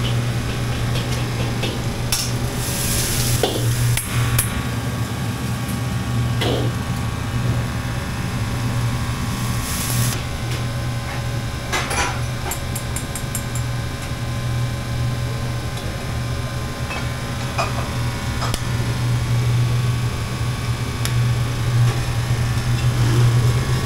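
A metal ladle clanks against a wok.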